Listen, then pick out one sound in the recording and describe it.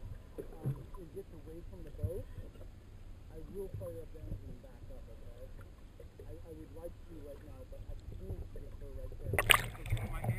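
Water churns with a low, muffled rumble underwater.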